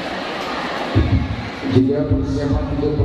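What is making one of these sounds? A man speaks into a microphone over loudspeakers.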